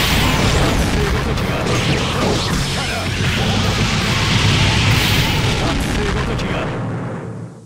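Rapid punches and blasts crash in a flurry of game hits.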